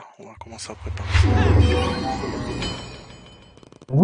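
A magic spell effect whooshes and chimes.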